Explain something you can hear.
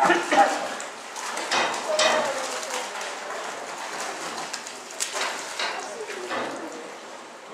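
Water splashes as a net scoops through it.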